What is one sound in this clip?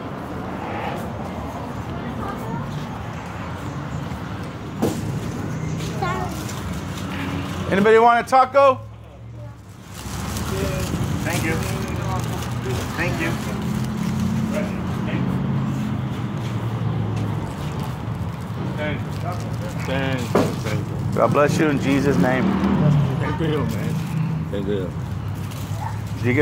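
A middle-aged man speaks close to a phone microphone, talking casually.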